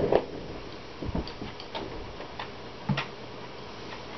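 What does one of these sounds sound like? A glass bottle clinks down on a table.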